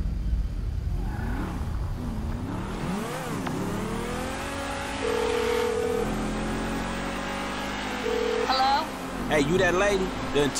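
A sports car engine roars and revs as the car speeds along.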